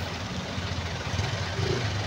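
A motorcycle passes close by with a buzzing engine.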